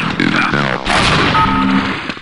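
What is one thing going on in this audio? A rocket explodes with a booming blast.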